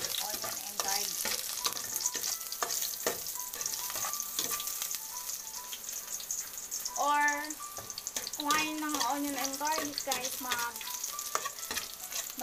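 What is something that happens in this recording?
A metal utensil scrapes and clinks against a metal pot.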